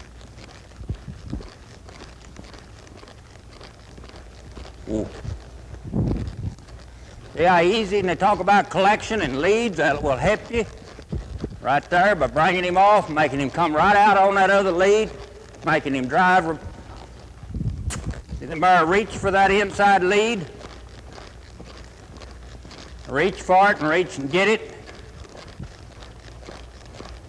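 A horse's hooves thud softly on loose dirt.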